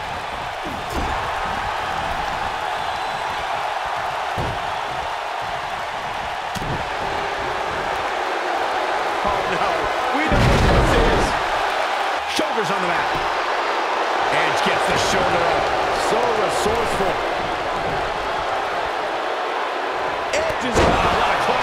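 Wrestlers' bodies thud heavily onto a ring mat.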